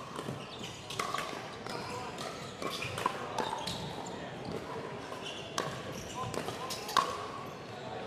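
Paddles strike a plastic ball with sharp pops in an echoing hall.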